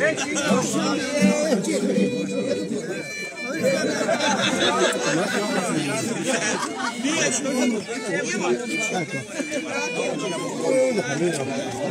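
A double bass plucks a bass line.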